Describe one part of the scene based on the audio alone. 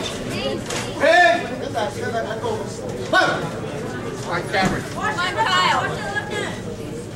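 Spectators shout and cheer in an echoing hall.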